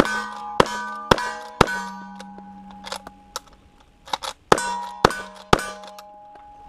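Gunshots crack in quick bursts outdoors.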